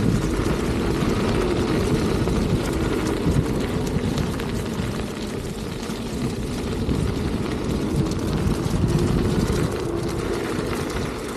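Wind rushes steadily past outdoors.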